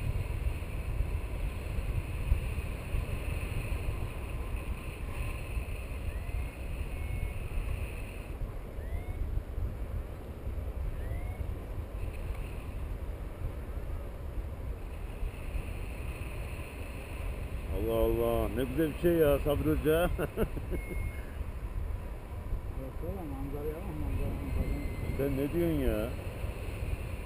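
Wind rushes steadily past a microphone.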